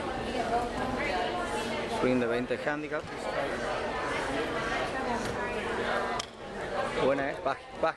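Several men talk and chatter nearby outdoors.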